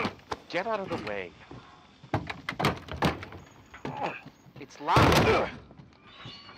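A door rattles as a man shakes its handle.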